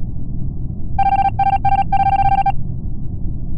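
Short electronic beeps sound in quick bursts.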